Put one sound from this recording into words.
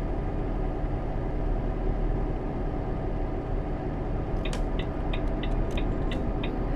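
A truck engine drones steadily at low pitch.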